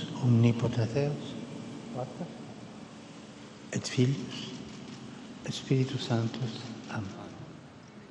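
An elderly man speaks slowly into a microphone, heard over loudspeakers outdoors.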